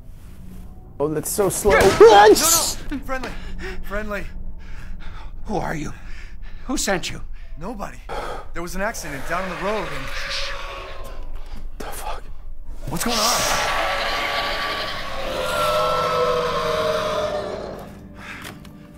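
A man shouts and talks excitedly close to a microphone.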